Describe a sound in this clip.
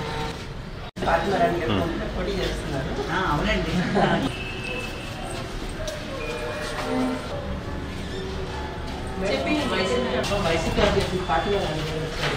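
Women talk over one another close by.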